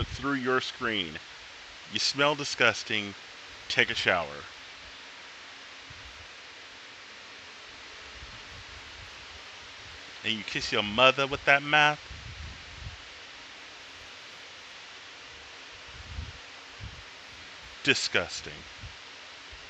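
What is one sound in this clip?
A man speaks in short bursts into a close microphone, with pauses between.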